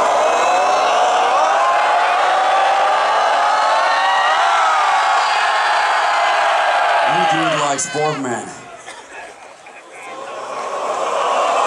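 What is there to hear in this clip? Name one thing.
A large crowd cheers and roars loudly outdoors.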